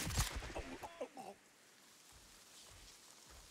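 Dry grass rustles as someone crawls through it.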